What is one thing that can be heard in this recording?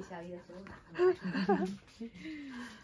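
A toddler laughs.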